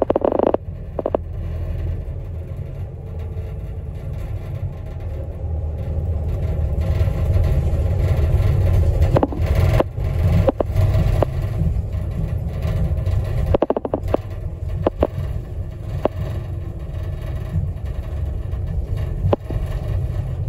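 A vehicle engine rumbles steadily and road noise drones from inside a moving car.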